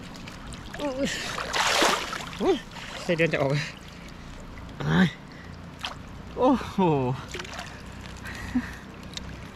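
Water splashes and sloshes as a man wades.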